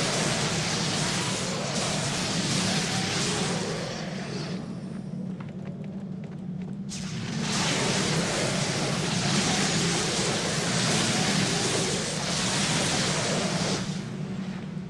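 Game battle sounds clash and whoosh.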